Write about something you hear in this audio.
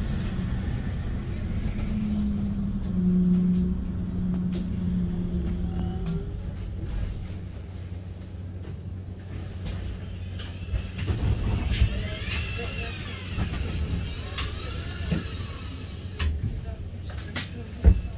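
A vehicle's motor hums and rumbles steadily while moving.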